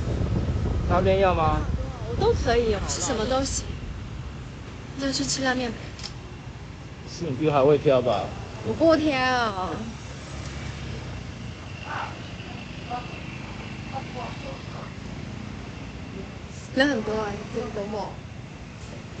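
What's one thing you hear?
A person talks casually close by.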